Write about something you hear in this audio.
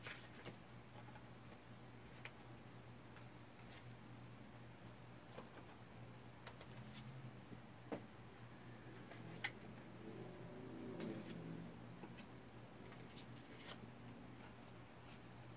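Cards tap softly as they are set down on a hard surface.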